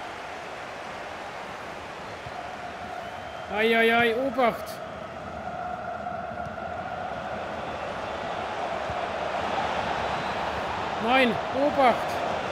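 A large crowd murmurs and roars steadily in a stadium, slowly swelling.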